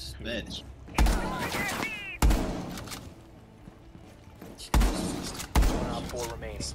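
Gunshots fire in sharp single bursts.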